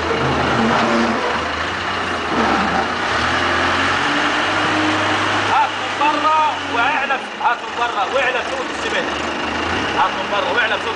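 A loader's diesel engine rumbles steadily nearby.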